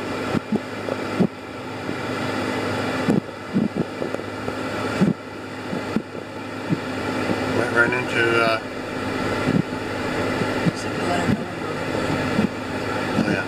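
A car engine hums steadily from inside the car as it drives slowly.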